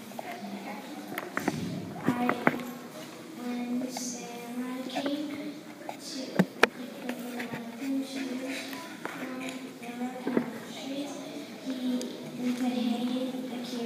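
A group of young children sing together in an echoing hall.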